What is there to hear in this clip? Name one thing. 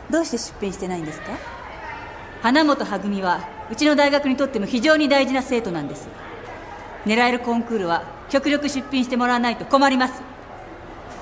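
A woman speaks firmly and calmly, close by.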